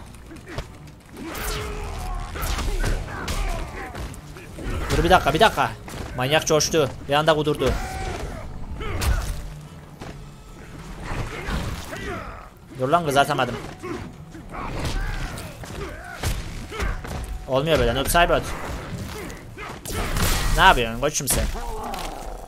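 Fighters grunt and shout as blows land.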